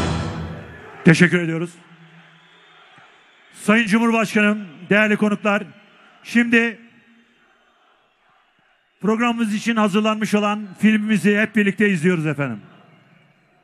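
A man chants slowly and melodiously through a microphone, echoing in a large hall.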